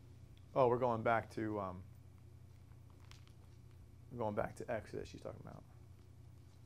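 A man speaks calmly into a clip-on microphone, in short phrases with pauses.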